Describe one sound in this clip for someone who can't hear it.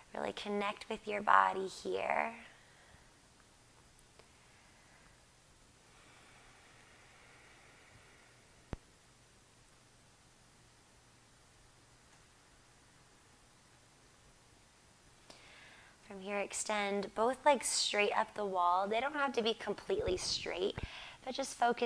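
A woman speaks calmly and gently, giving instructions close to a microphone.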